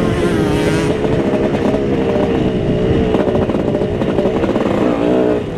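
A dirt bike engine roars loudly up close, its pitch rising and falling.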